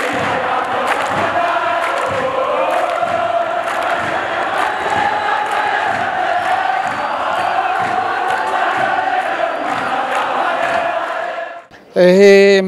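A large stadium crowd sings and chants loudly in unison.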